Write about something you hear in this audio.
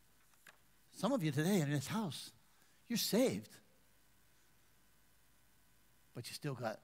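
A middle-aged man speaks with animation through a headset microphone, in bursts with pauses.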